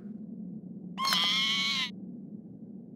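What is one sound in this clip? A cartoon character chirps a short warbling call.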